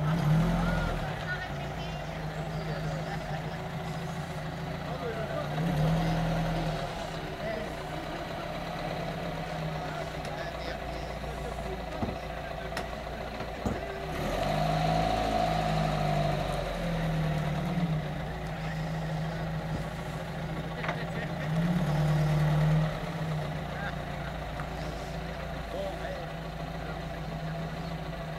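An old car engine idles with a steady low rumble and now and then revs up.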